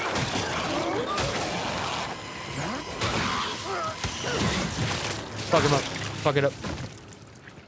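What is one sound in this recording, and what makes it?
A gun fires and flesh bursts apart.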